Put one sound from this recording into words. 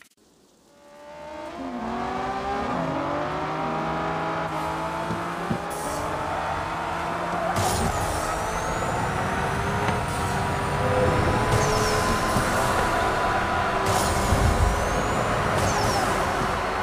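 A car engine roars and revs higher as it speeds up.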